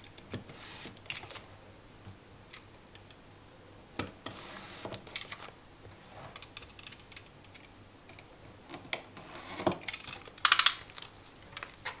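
Paper rustles and crinkles as a box is wrapped.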